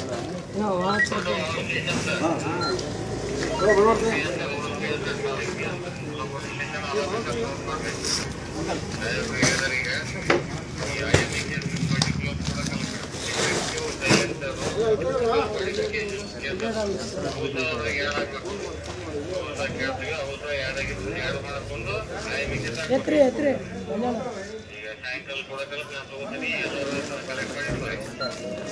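Several men talk loudly and excitedly nearby, outdoors.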